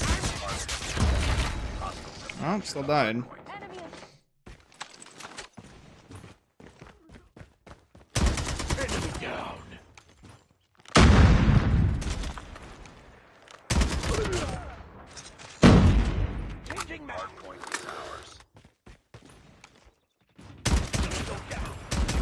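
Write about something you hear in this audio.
Gunshots fire in rapid bursts with loud blasts.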